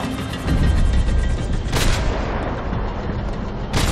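Gunshots ring out in a large echoing space.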